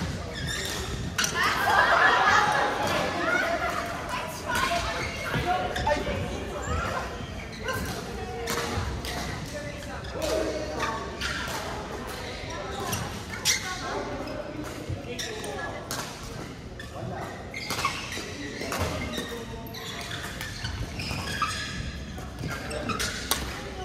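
Shuttlecocks are struck sharply with rackets, echoing in a large hall.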